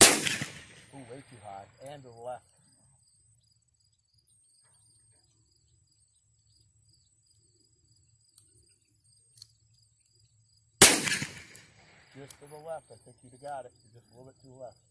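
A young woman talks briefly after each shot.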